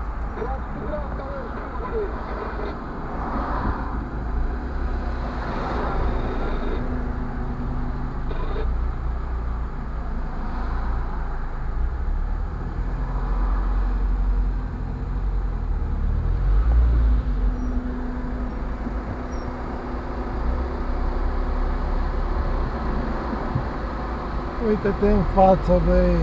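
A car engine idles with a low, steady rumble heard from inside the car.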